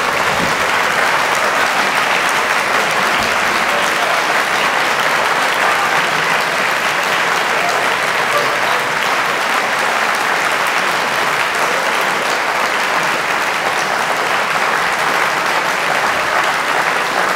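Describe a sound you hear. An audience applauds loudly and steadily in a large hall.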